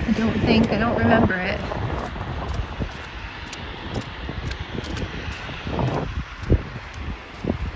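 Footsteps crunch on packed snow at a steady walking pace.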